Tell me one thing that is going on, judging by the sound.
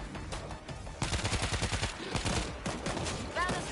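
A rifle fires in rapid bursts, with loud sharp cracks.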